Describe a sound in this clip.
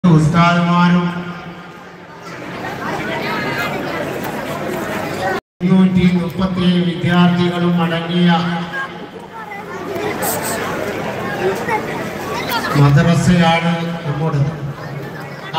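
A man chants through loudspeakers with a slight echo outdoors.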